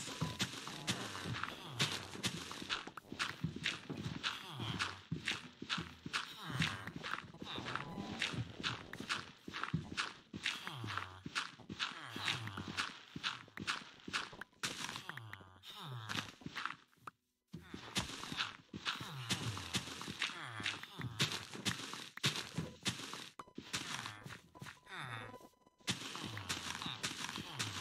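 Game blocks of dirt crunch as they are dug out, again and again.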